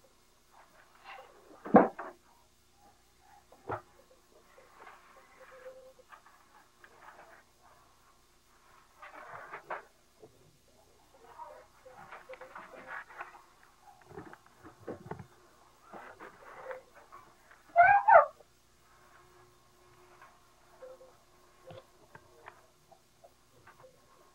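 Soft cloth rustles and thumps as a toddler pulls it from a shelf.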